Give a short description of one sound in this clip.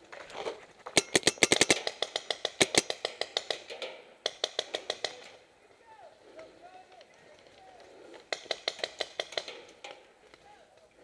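A paintball marker fires in rapid bursts outdoors.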